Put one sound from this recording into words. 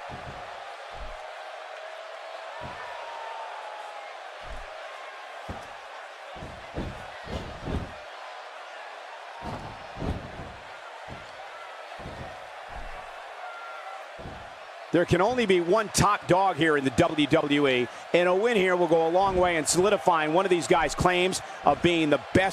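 Bodies thump heavily onto a wrestling mat.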